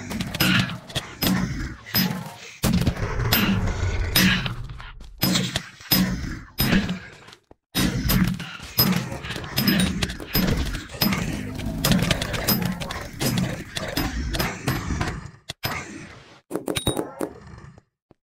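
A gun fires in a video game.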